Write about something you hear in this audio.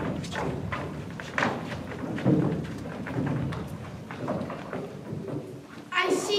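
A teenage girl speaks loudly and clearly in an echoing hall.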